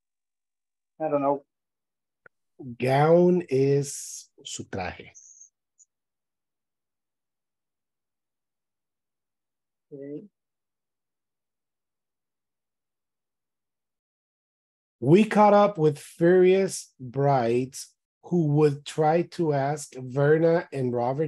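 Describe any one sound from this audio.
A young man speaks over an online call, reading out calmly.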